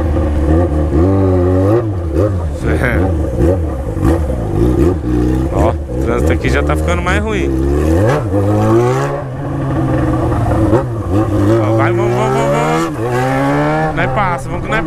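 A motorcycle engine revs up and down close by, its pitch rising and falling.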